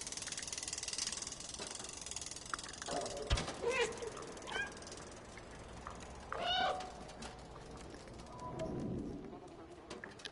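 A cat's paws patter on a metal roof.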